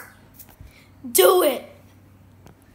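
A boy shouts excitedly close by.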